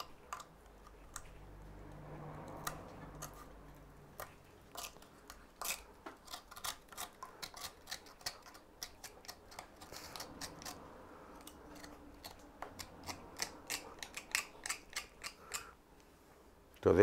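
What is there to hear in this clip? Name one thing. A knife scrapes and clicks against wood.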